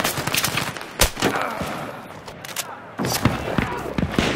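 Single gunshots crack now and then.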